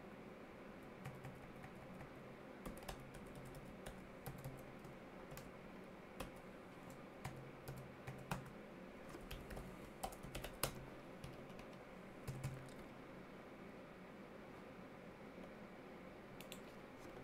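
Keys clack on a keyboard in quick, uneven bursts.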